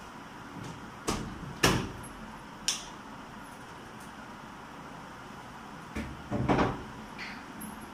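A washing machine lid thumps and knocks.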